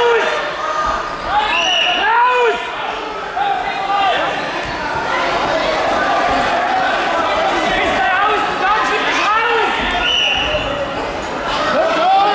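Wrestlers scuffle and thump on a mat.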